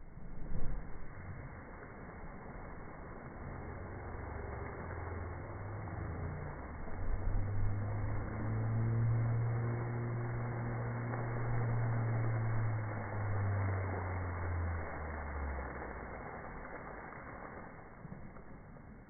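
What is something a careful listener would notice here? Water churns and fizzes at the surface.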